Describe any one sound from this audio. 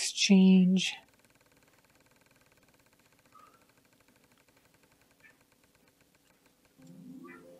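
A prize wheel spins with a soft, fast ticking.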